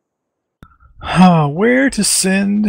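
A man speaks animatedly into a close microphone.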